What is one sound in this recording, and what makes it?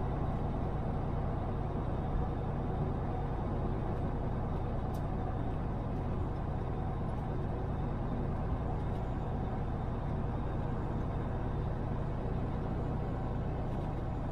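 A car engine hums steadily as the car drives along a road.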